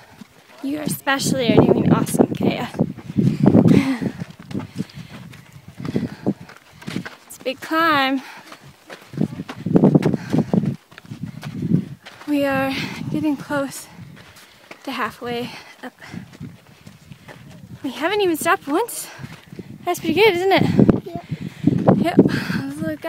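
A young girl talks close by, outdoors.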